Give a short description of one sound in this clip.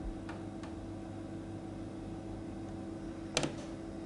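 A plastic cuvette clicks as it is set down on a hard surface.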